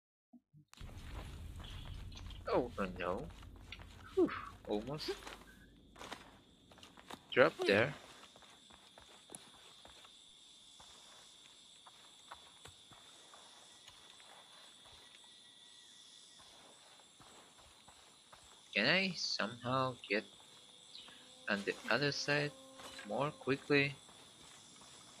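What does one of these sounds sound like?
Footsteps scuff softly on stone.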